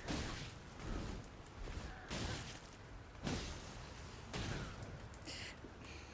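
Weapons clash and swoosh in a game fight.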